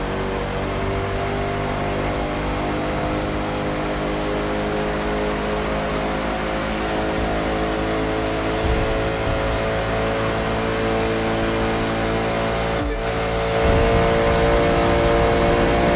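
A sports car engine roars steadily at high speed, its pitch slowly climbing.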